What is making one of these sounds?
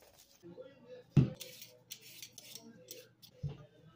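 A peeler scrapes the skin off a potato.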